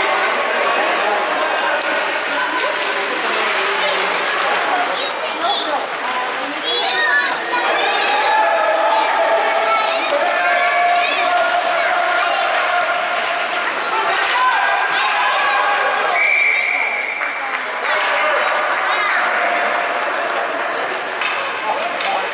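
Ice skates scrape and hiss across the ice.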